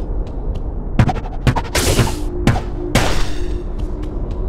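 A spell crackles with a burst of electric sparks.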